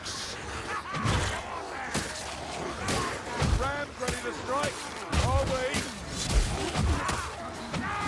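Blades swing and strike with heavy thuds.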